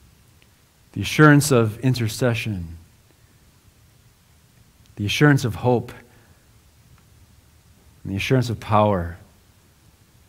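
A man speaks slowly and calmly through a microphone, pausing between phrases.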